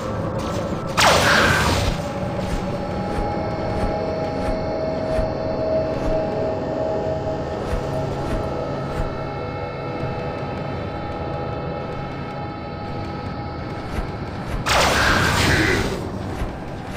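Heavy guns fire in loud roaring bursts.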